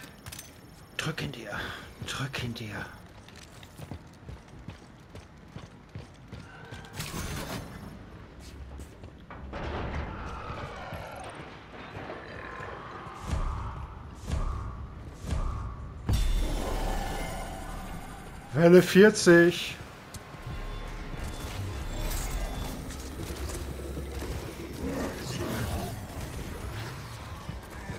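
Heavy metallic footsteps clank on a hard floor.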